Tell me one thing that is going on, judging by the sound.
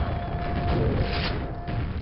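A monster's body bursts apart with a wet splatter.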